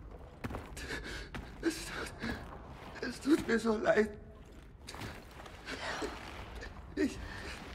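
A man speaks in a choked, tearful voice close by.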